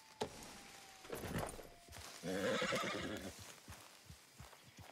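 Leaves and branches rustle as a horse pushes through brush.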